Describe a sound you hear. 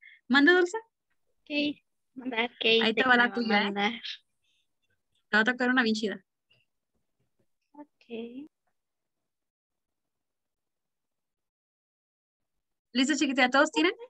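A young woman talks with animation through a microphone, with pauses.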